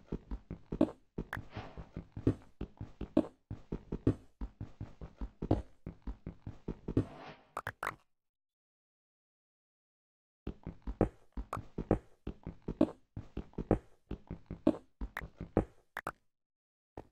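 A pickaxe taps rapidly on stone blocks that crack and break.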